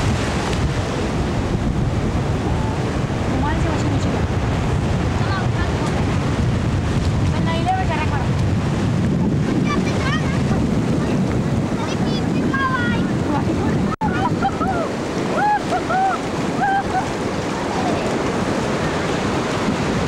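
Small waves break and wash up on a sandy beach.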